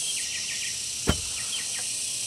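A wooden pole thumps down into a hole.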